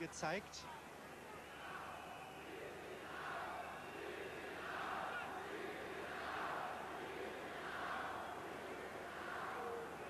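A large stadium crowd roars and cheers in swelling waves.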